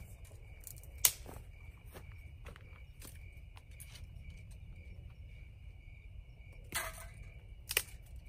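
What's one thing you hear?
Dry branches snap and crack.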